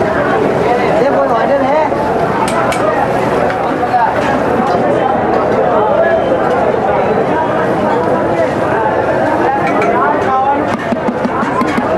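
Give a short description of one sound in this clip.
A metal spatula scrapes and taps on a hot griddle.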